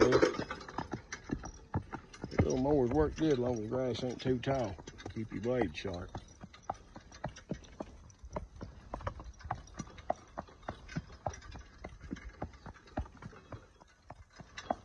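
A horse's hooves clop steadily on pavement.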